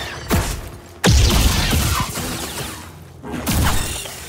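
A lightsaber strikes a creature with a sharp crackle.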